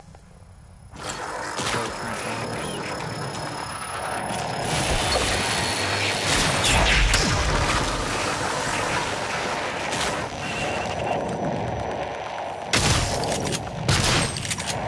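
Guns fire in rapid bursts with loud blasts and impacts.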